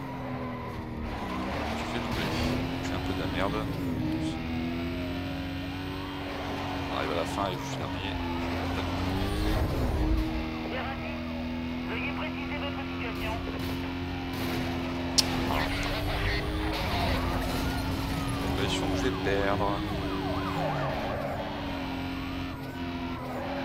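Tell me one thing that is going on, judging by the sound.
A racing car engine roars at high speed and shifts through gears.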